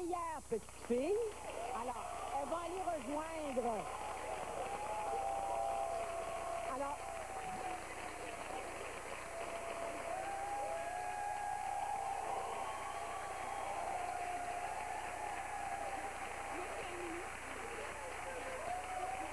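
A studio audience applauds loudly.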